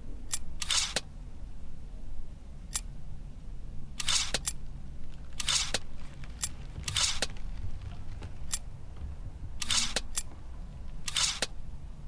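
Soft whooshes sweep by several times.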